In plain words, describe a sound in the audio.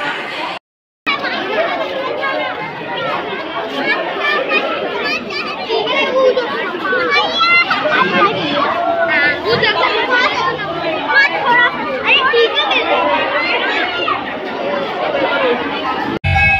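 A crowd of men and women chatter loudly all around.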